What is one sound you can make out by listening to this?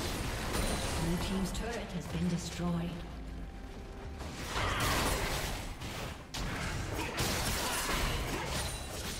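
Fantasy battle effects clash, zap and whoosh as characters fight.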